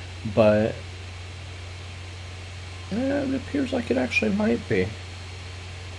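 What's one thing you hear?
A young man speaks calmly into a nearby microphone.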